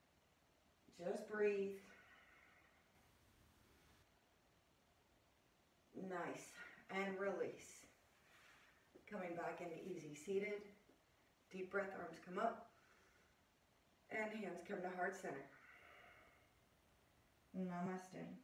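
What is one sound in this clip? A woman speaks calmly and slowly, close to a microphone, with pauses.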